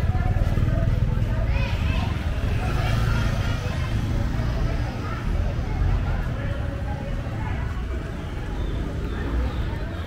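Outdoors, motorbike engines hum and buzz as traffic passes on a city street.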